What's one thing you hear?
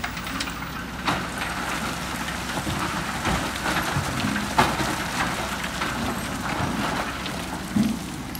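Rocks and soil tumble and rattle into a metal truck bed.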